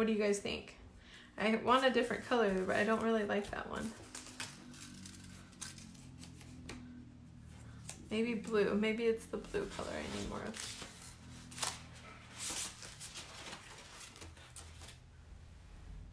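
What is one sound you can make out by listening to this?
Paper rustles and crinkles as hands move it.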